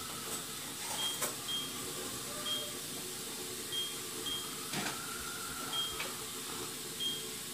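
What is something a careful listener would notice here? A handheld game console beeps with short, repeated electronic blips.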